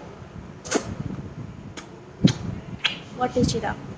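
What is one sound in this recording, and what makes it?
A finger rubs against the microphone with scratchy thumps.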